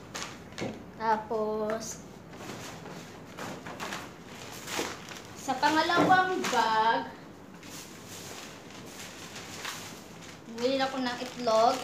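A young woman speaks close by in a lively voice.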